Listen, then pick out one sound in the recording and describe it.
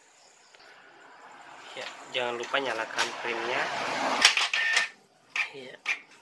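A printer whirs as it feeds and prints a page.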